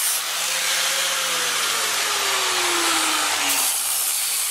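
An angle grinder's motor winds down after being switched off.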